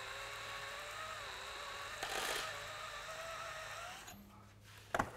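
A power drill whirs steadily, then stops.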